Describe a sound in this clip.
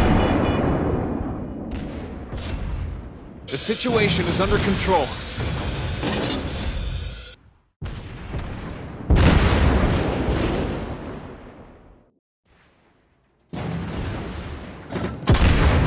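Shells explode with deep bangs.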